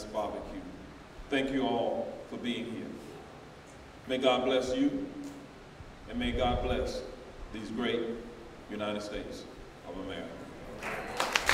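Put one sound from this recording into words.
A man speaks calmly into a microphone over loudspeakers in an echoing hall.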